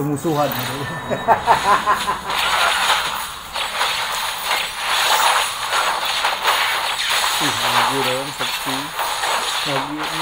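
Game battle effects clash and crackle busily.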